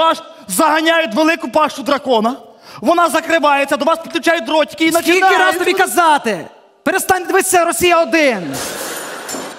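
A young man sings with animation through a microphone.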